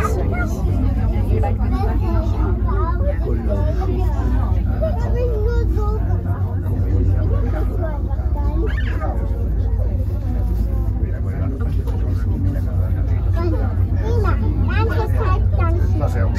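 A cable car rumbles steadily as it glides along its cable.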